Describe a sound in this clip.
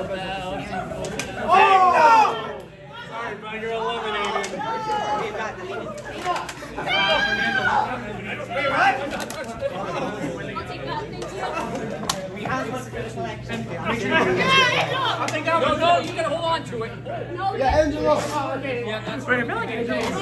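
A group of adults and teens talk and call out with excitement in a large echoing hall.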